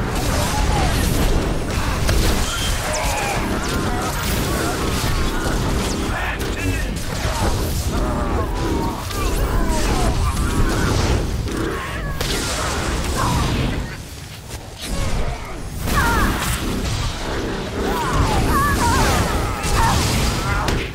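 Explosions boom and crackle in a game battle.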